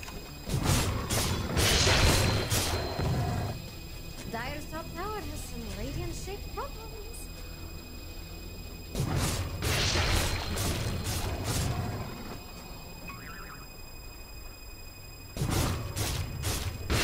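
Spells and attacks crash and burst in a fantasy battle game.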